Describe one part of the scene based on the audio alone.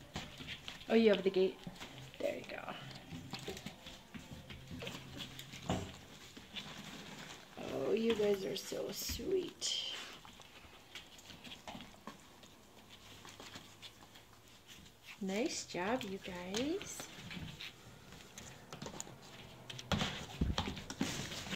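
Paws patter and scuffle on soft mats.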